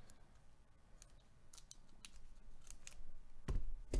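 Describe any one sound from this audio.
Scissors snip through a plastic wrapper.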